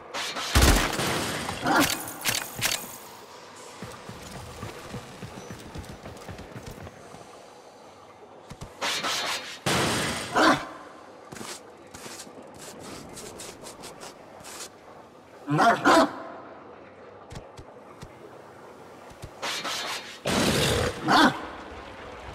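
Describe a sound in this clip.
Blades slash and clang in loud, sudden bursts.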